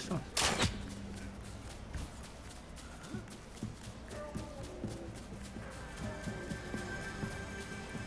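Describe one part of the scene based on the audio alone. Footsteps patter through grass.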